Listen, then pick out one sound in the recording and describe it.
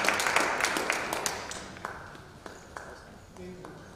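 A concert band plays a final chord that rings out in a large hall.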